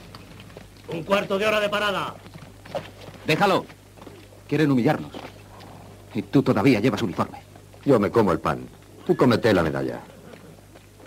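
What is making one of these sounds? A young man speaks firmly, close by.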